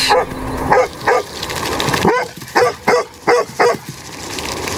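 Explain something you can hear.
A dog barks repeatedly.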